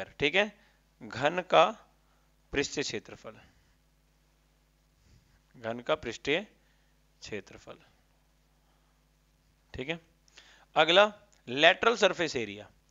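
A man speaks calmly and clearly, close to the microphone, in short bursts with pauses.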